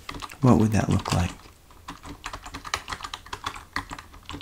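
Fingers type on a computer keyboard.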